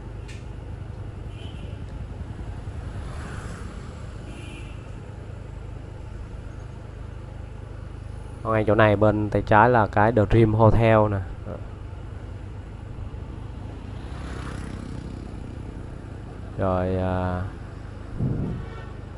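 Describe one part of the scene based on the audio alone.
Motorbike engines hum steadily along a street.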